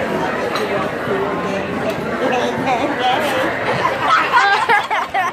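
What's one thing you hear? A crowd of people chatter loudly all around.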